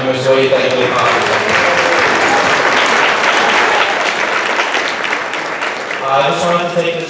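A large audience claps and cheers.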